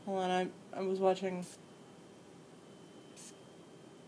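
A spray bottle hisses in short spurts.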